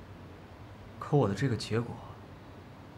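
Another young man answers in a playful tone.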